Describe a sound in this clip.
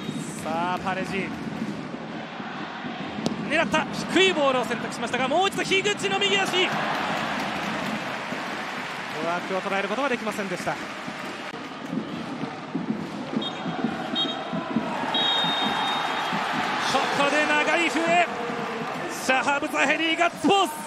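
A stadium crowd cheers and roars.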